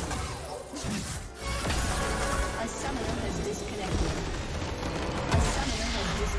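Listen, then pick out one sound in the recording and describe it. Magic spells crackle and blast in a hectic battle.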